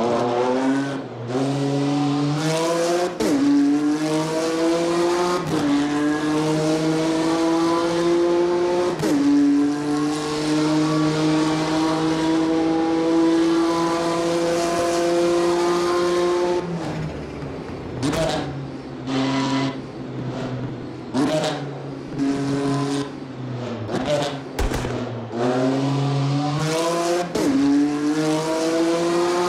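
A race car engine revs hard, its pitch climbing and dropping with each gear shift.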